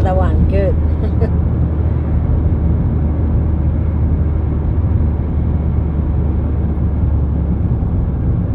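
A car engine hums steadily as tyres roll along a motorway.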